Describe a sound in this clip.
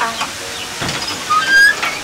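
A door latch rattles.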